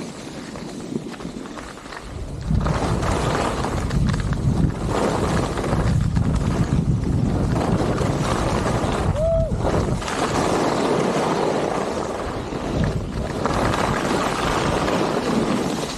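Wind rushes past, buffeting loudly.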